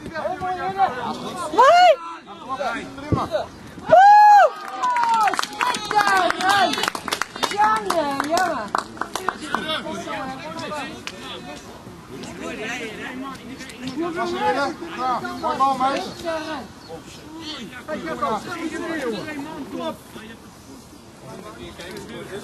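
Young men shout and call out to each other outdoors, some loud and near, others farther off.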